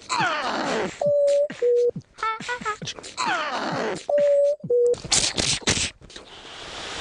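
A man makes whistling and popping sounds close to a microphone.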